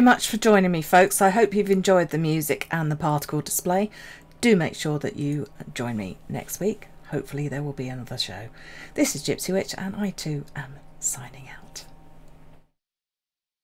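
An elderly woman talks with animation through a headset microphone.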